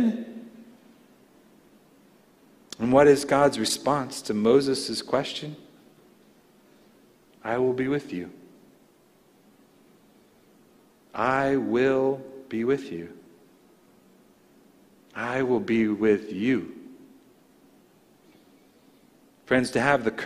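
A middle-aged man speaks slowly and deliberately into a microphone, with long pauses.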